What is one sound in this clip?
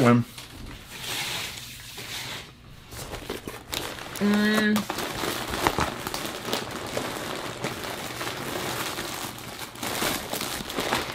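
Cardboard and plastic wrapping rustle as a box is unpacked.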